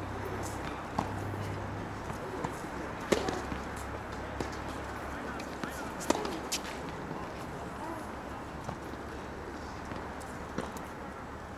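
Tennis balls are struck with rackets in sharp, hollow pops.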